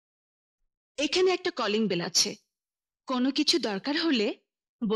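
A woman speaks sharply, close by.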